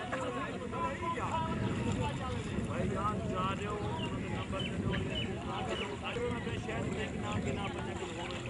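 Several men talk and call out at once close by, outdoors.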